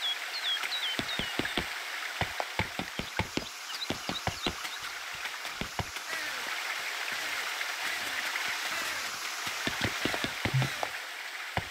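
Footsteps tap on a stone path.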